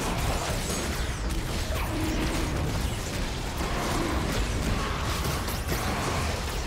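Magic spells whoosh and crackle in a fast battle.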